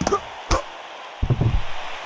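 A boxer crashes down onto the canvas.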